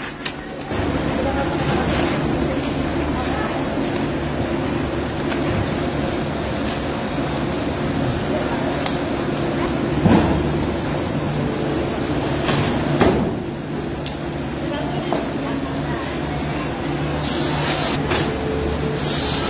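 Industrial machinery hums and rumbles steadily.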